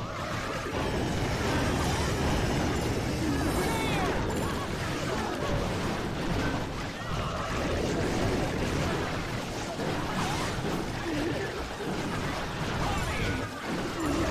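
Electric zaps crackle in a battle game.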